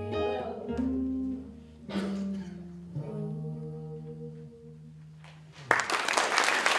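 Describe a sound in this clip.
An electric guitar plays.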